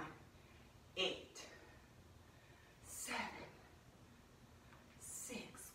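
A young woman exhales sharply in short bursts.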